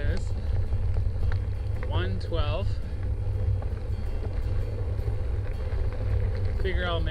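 Tyres rumble and crunch over a gravel road.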